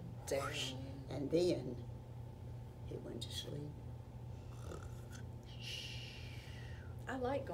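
An elderly woman speaks calmly nearby.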